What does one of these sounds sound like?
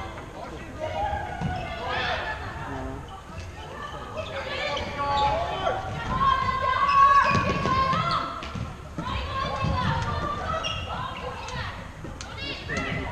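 Sports shoes squeak sharply on a hard indoor floor.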